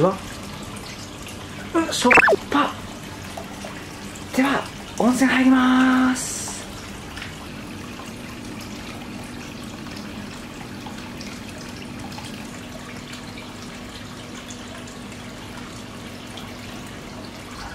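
Hot water pours steadily from a spout into a full bath.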